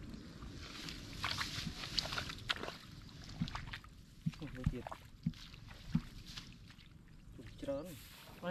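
Footsteps rustle and crunch on dry straw.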